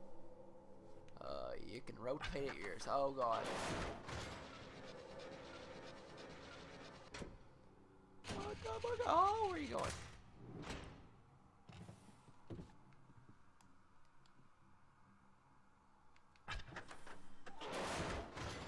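A heavy wooden frame scrapes and creaks as it is turned on a wall.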